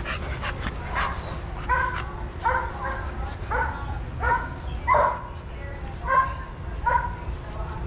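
A dog barks repeatedly close by.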